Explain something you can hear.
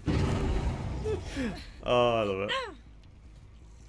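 A man speaks with animation into a close microphone.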